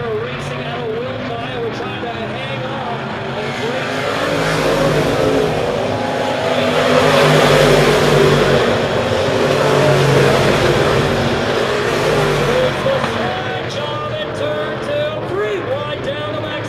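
Race car engines roar past, swelling loud and then easing off.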